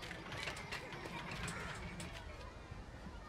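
Young children chatter and shout playfully.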